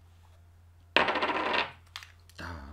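Game pieces clatter on a table.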